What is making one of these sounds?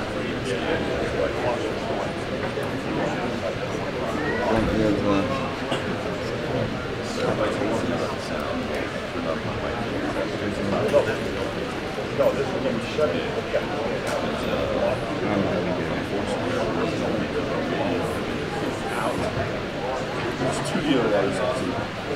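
A crowd of men and women chatter nearby in a large room.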